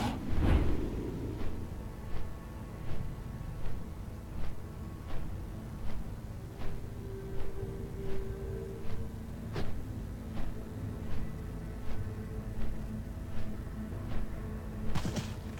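Large wings beat in a steady, even rhythm.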